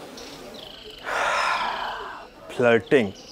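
A man sighs heavily.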